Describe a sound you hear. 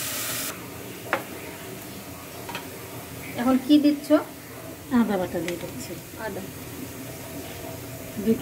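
A wooden spoon scrapes and knocks inside a metal pot.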